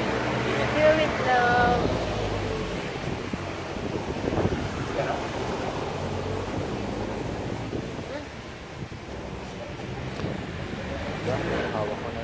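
A young man talks, close by.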